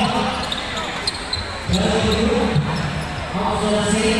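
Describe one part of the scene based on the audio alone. A basketball bounces on the court as a player dribbles.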